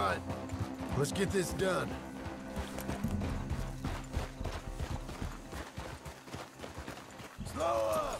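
Horse hooves clop on a cobbled street.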